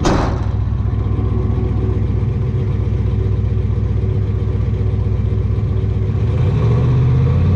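A loud race car engine idles with a rough, lumpy rumble.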